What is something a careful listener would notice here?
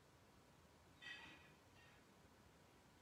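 A man murmurs briefly and quietly, close by.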